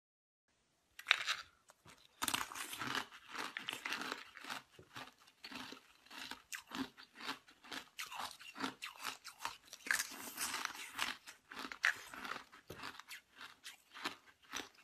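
A woman crunches and chews ice loudly, close up.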